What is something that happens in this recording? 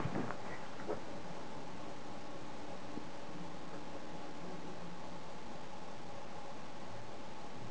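Plastic parts click and scrape together as they are handled.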